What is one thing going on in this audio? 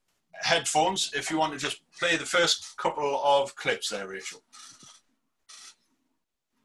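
A man speaks calmly through an online call microphone.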